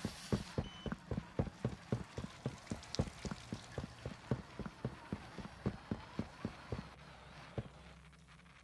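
Heavy footsteps thud quickly and steadily on a hard floor.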